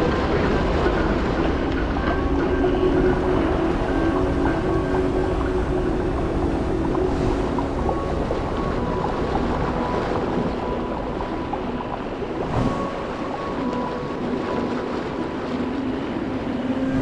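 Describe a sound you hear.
A deep underwater rumble murmurs steadily.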